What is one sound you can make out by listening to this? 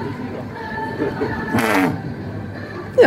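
A man blows a sharp puff of air through a blowpipe.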